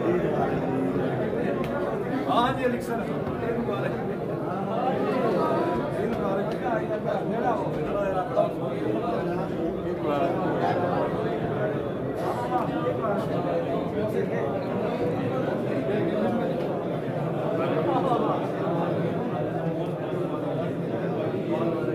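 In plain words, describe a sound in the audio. A crowd of men chatter and greet each other all around in a busy indoor hall.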